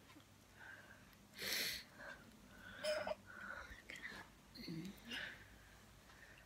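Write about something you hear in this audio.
A baby coos and babbles softly close by.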